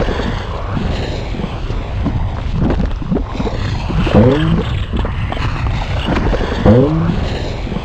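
Lava bubbles and pops steadily.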